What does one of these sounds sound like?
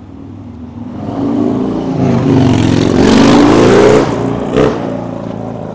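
A vehicle roars loudly past close by.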